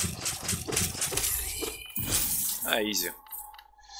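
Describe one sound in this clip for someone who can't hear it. Sword slashes and hits ring out sharply.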